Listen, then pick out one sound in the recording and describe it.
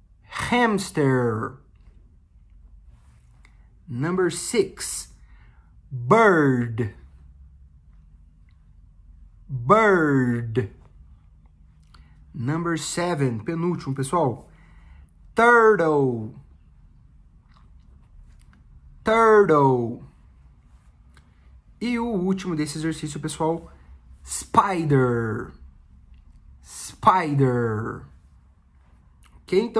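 A young man speaks close to a microphone in short, clear phrases with pauses between them.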